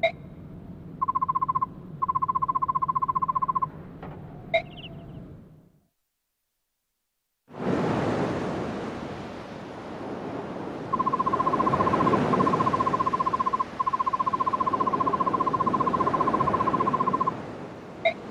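Rapid electronic blips tick quickly in short bursts.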